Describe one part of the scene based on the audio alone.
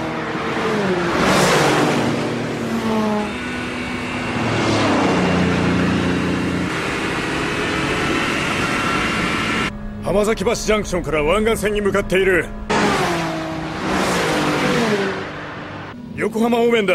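Car engines roar loudly as the cars race past.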